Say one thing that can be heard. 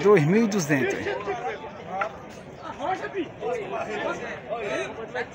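A crowd of men and women chatters and calls out.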